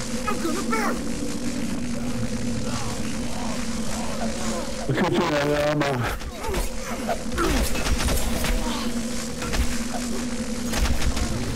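A blade slashes and thuds into flesh.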